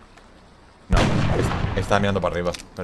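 A burst of gunfire rings out.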